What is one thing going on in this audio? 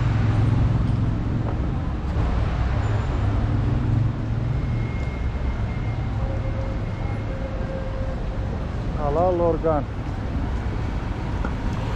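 A crowd murmurs and shuffles along a busy street outdoors.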